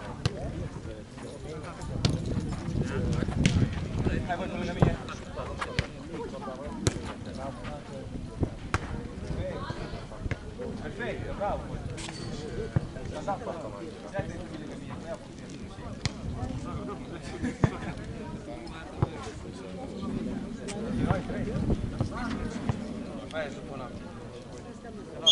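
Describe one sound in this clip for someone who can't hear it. Young men shout and call to each other across an outdoor court.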